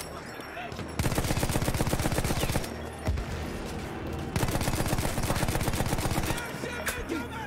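A machine gun fires in rapid bursts close by.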